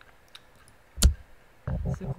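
A soft click sounds as a menu opens.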